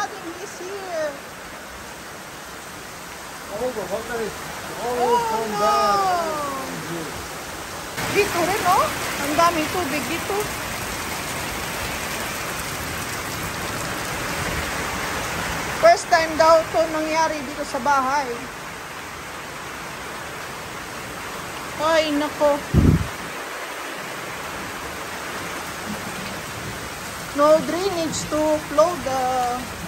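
Rainwater splashes and flows across wet ground.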